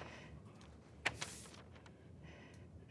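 Paper rustles as a sheet is picked up.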